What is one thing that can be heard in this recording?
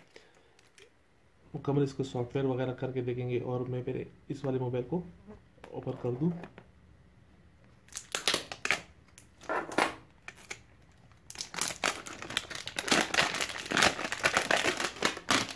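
Cardboard boxes are handled and slid about.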